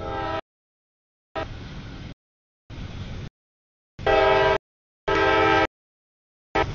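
A locomotive horn blasts loudly in long bursts.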